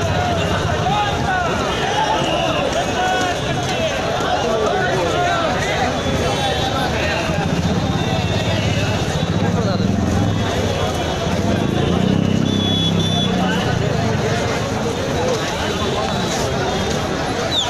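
A large crowd of men talks and chatters outdoors.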